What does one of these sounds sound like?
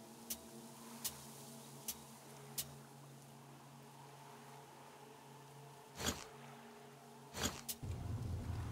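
Short sharp clicks tick now and then.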